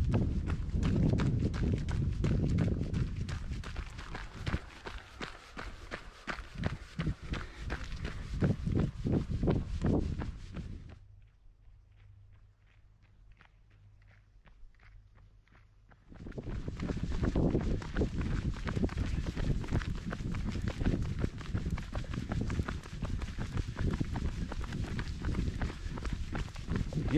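Running footsteps slap on pavement.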